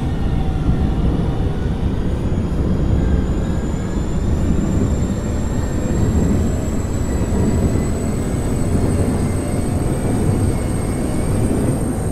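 A subway train rumbles steadily along the tracks.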